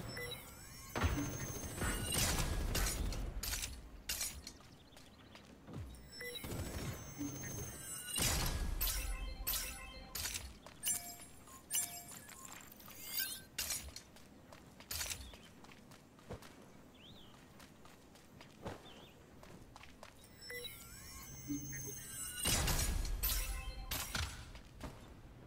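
Game sound effects chime and whoosh as supply crates open.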